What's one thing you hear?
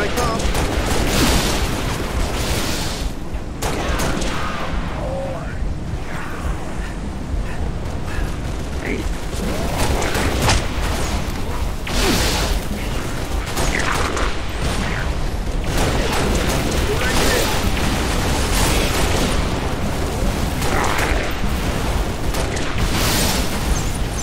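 Rifle gunfire rattles in loud bursts.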